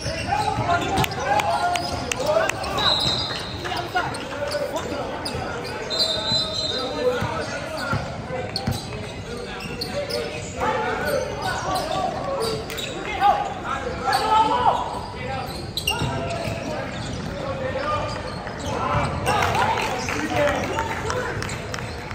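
Young men shout and call out to each other.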